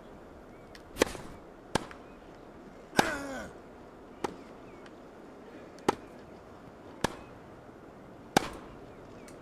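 A tennis ball is struck sharply back and forth with rackets.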